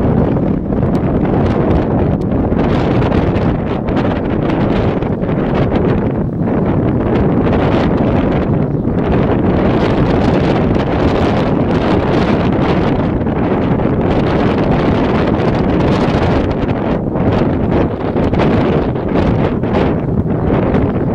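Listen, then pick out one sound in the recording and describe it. Wind blows hard and buffets outdoors.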